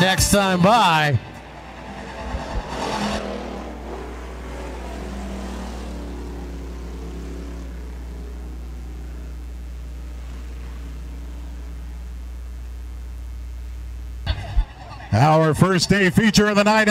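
Race car engines roar as the cars speed past, rising and falling in pitch.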